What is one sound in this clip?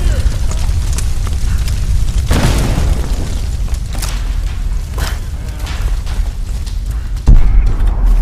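Footsteps thud on wooden stairs and planks.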